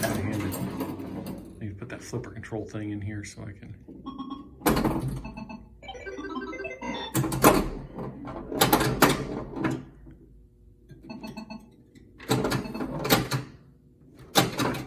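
A pinball machine rings its chimes and bells.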